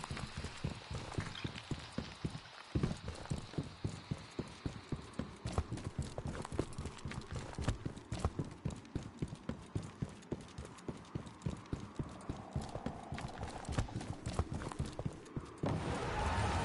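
Quick footsteps patter along a gravel path.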